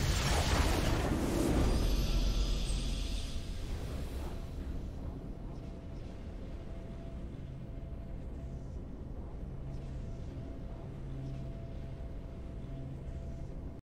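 A triumphant game fanfare swells and then settles into a soft hum.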